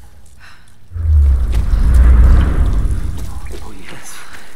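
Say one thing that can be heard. A deep rumbling boom echoes through a cave.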